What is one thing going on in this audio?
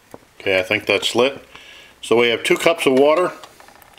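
A metal pot clinks down onto a stove.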